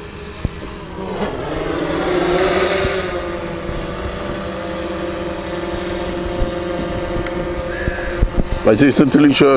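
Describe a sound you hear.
A small drone buzzes overhead.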